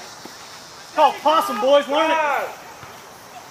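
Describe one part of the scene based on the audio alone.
A man shouts loudly and excitedly close by.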